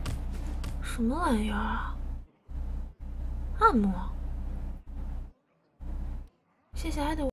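A young woman speaks briefly and casually into a close microphone.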